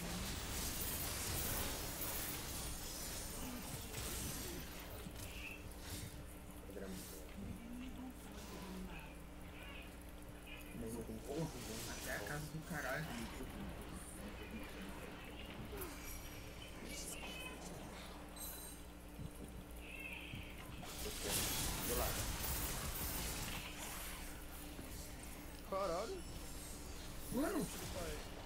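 Fantasy battle sound effects of spells and blows burst and clash.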